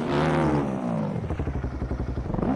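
A motorcycle engine idles with a rapid low putter.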